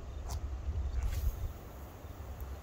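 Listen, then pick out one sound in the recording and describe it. A fishing line whooshes out during a cast.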